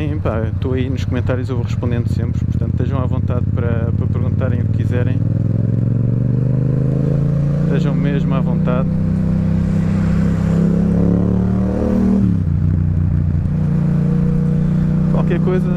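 A motorcycle engine hums steadily and climbs in pitch as it speeds up.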